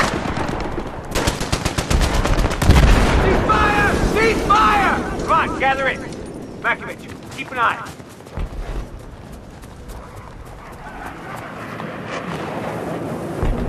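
Rapid gunfire cracks and rattles.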